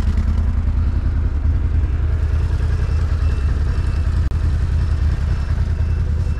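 Mud sprays from a quad bike's spinning wheels.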